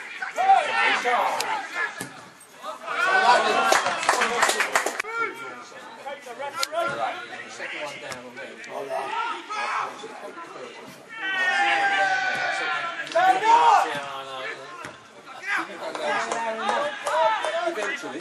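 Men shout and call out loudly across an open pitch.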